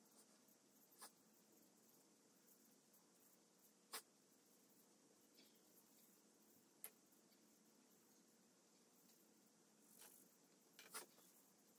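Small tools tap and knock against clay pots now and then.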